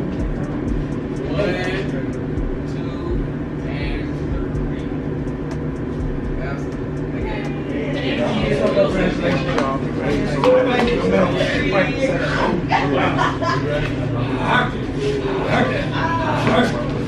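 A group of young women and men chatter with animation close by, growing louder.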